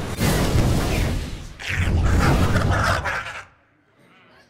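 Magical game sound effects whoosh and chime as cards are played.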